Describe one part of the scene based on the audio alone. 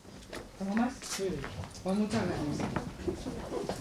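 A woman speaks calmly into microphones close by.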